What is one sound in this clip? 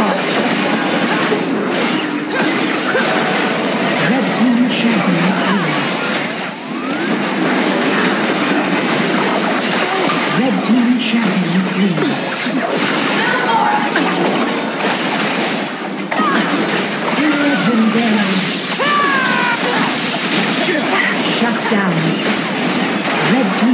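Magic spells whoosh and burst in a rapid, busy fight.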